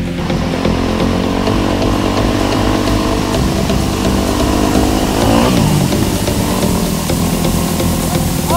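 A dirt bike engine roars loudly up close, revving up and down.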